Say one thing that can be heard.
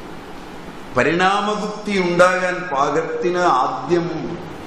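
A man speaks into a microphone in a slow, chanting lecture voice.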